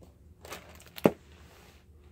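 A book shuts with a soft thump.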